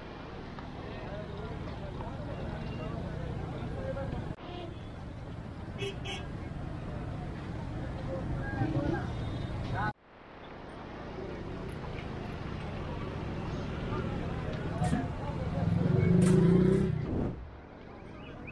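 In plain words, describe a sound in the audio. Car engines hum and idle nearby.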